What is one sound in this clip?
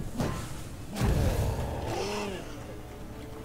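A fiery magic bolt whooshes and bursts with a deep boom.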